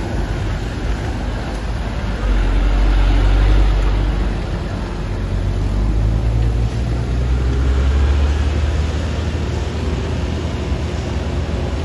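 A truck engine rumbles and strains close by.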